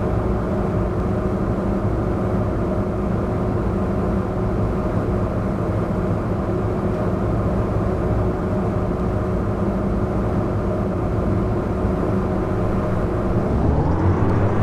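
A diesel bus engine idles with a low, steady rumble.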